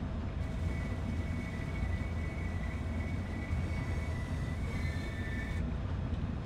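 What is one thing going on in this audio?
Train wheels clatter over rails.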